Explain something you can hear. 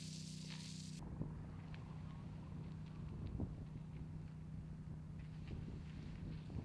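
A fire hose sprays a jet of water onto burnt ground.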